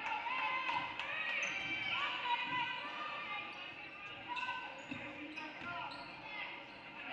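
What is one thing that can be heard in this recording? Sneakers squeak sharply on a hardwood court in an echoing gym.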